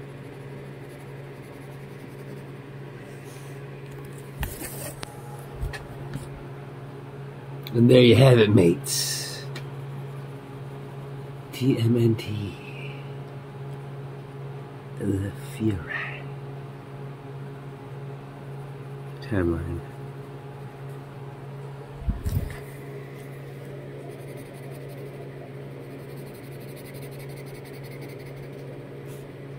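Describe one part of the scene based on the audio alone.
A pencil scratches on paper while colouring.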